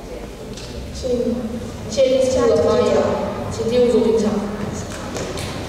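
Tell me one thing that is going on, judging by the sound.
A boy speaks into a microphone, heard through loudspeakers in an echoing hall.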